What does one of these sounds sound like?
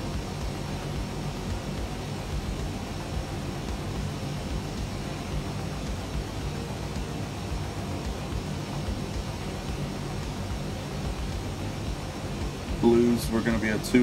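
A jet engine hums steadily in a low drone.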